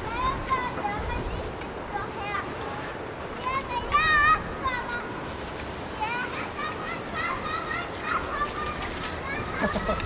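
Young goats bleat close by.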